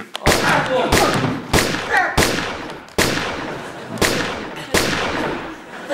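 Loud bangs like gunshots ring out in an echoing room.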